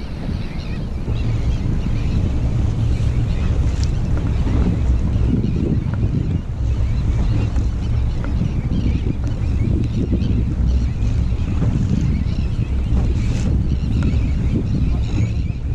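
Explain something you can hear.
Choppy waves slap against an inflatable boat's hull.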